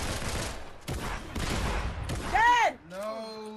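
A gun fires several shots in quick succession.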